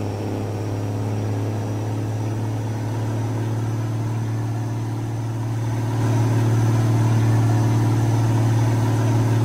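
A truck's diesel engine drones steadily, growing louder partway through.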